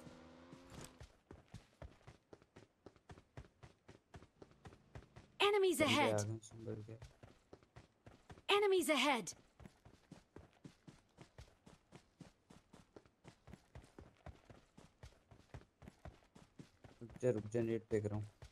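Footsteps run quickly and steadily over the ground.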